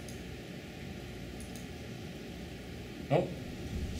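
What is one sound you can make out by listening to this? A computer keyboard key clicks once.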